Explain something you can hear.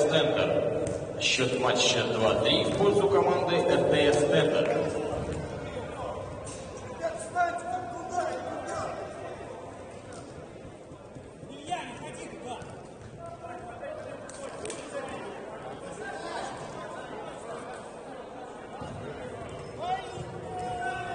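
Sports shoes squeak.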